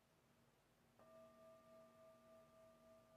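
A singing bowl is struck and rings out clearly.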